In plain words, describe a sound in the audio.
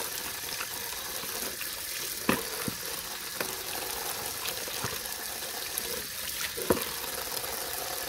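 Water swishes as hands wash a cloth in a bowl.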